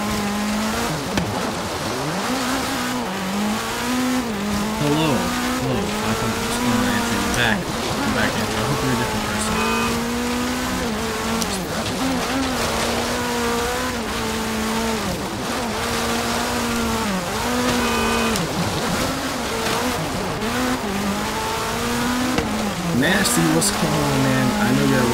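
A racing car's engine roars, revving up and down as it shifts gears.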